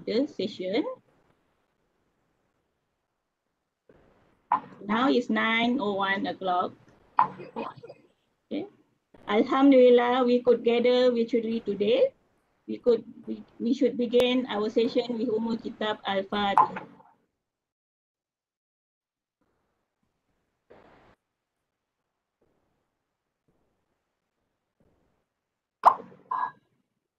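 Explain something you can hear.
A middle-aged woman speaks calmly through an online call, with pauses.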